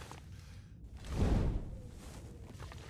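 A torch ignites with a loud whoosh.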